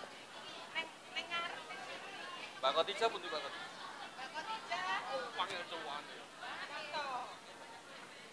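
A man speaks over a loudspeaker outdoors.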